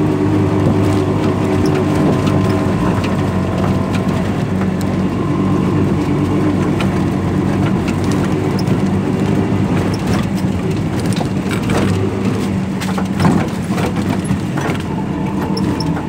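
A small engine putters steadily close by.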